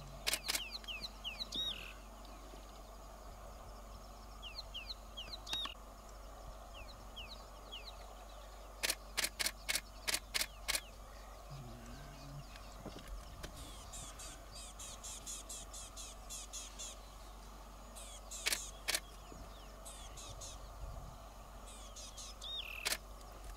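Birds chirp and call outdoors.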